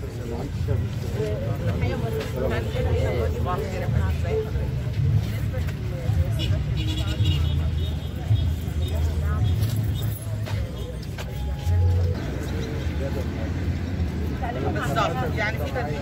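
A woman speaks calmly to a group of men.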